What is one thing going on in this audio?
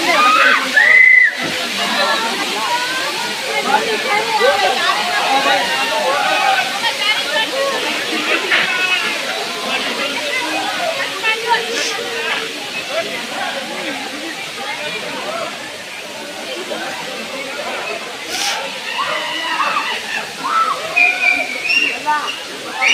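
Several men and women talk loudly outdoors at once.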